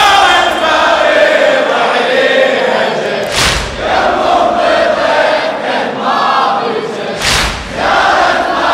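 A man chants a mournful melody loudly through a microphone in a large echoing hall.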